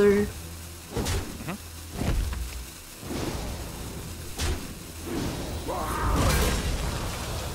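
Heavy thuds and whooshes of fantasy combat effects sound in quick bursts.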